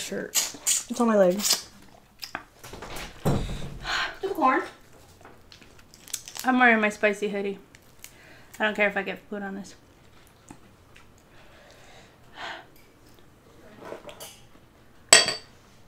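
Shells crack and snap as a woman peels seafood by hand.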